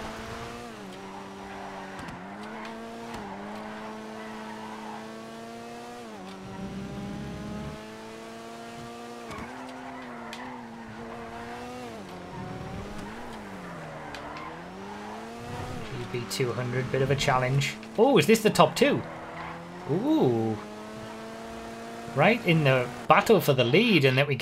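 A car engine revs and drones steadily, rising and falling in pitch with gear changes.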